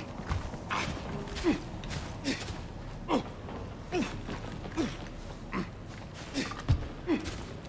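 Heavy footsteps thud steadily on a hard floor.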